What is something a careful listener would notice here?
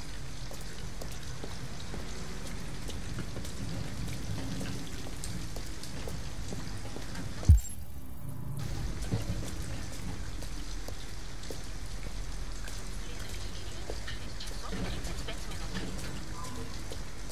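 Footsteps splash on wet pavement.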